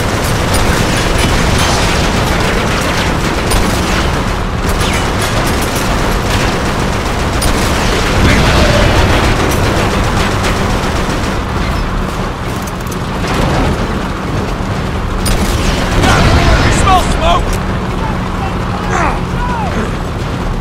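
Truck engines rumble steadily.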